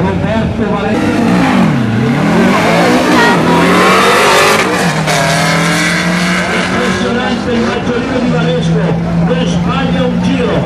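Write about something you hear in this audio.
Car engines roar loudly and rev up and down through gear changes as cars speed away.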